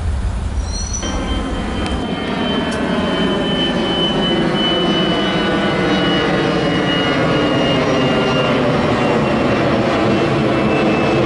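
A jet airliner roars low overhead with a high engine whine.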